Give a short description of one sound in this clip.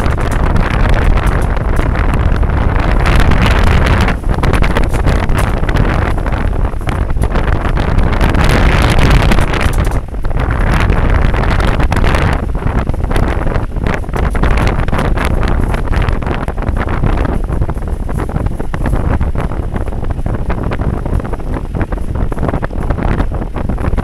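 Tyres crunch and rumble over a bumpy dirt road.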